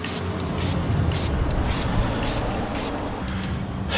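A tool scrapes in quick, regular strokes.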